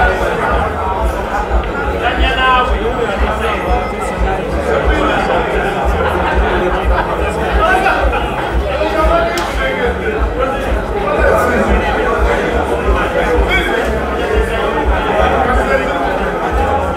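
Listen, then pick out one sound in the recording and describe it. A crowd of young men chatters loudly all around.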